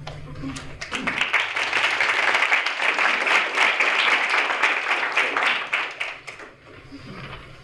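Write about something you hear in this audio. A small audience applauds.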